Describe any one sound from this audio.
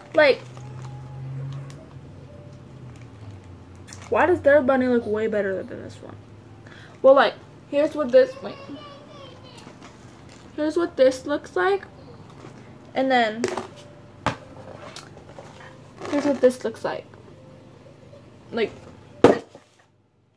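A plastic jar clicks and knocks in a girl's hands.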